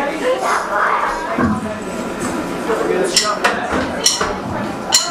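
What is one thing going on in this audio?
A drummer hits the drums and crashes the cymbals.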